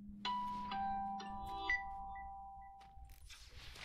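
Bright chiming tones ring out briefly.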